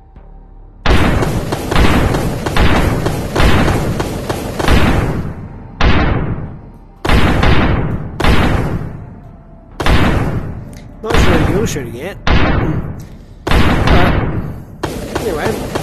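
Heavy blasts boom one after another, each fading away.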